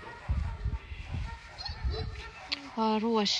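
A hand rubs and strokes a cat's fur with soft rustling.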